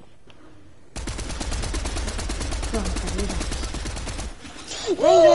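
An automatic rifle fires rapid bursts of shots.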